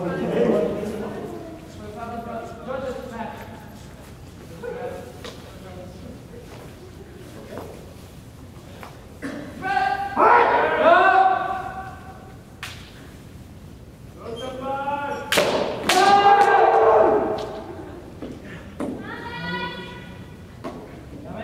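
Fencers shout loud, drawn-out battle cries that echo through a large hall.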